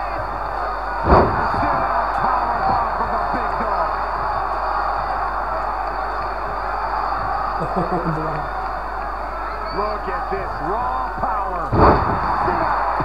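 A heavy body slams down hard onto a wrestling ring mat with a loud thud.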